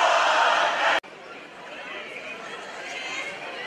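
A large crowd murmurs and calls out more quietly.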